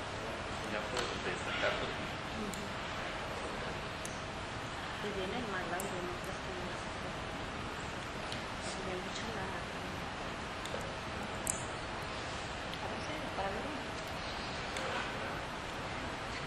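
A man speaks calmly at a distance.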